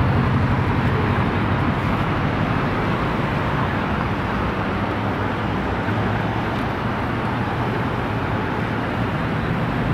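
A crowd murmurs outdoors nearby.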